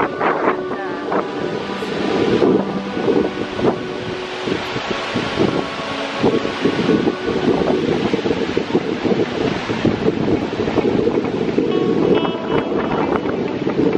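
A large waterfall roars steadily nearby.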